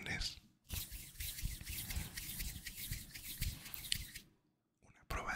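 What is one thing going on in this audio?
Fingers rub and tap right against a microphone.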